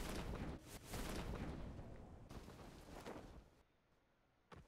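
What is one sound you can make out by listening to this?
Wind rushes loudly past a falling parachutist.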